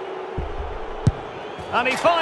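A football is kicked with a thump.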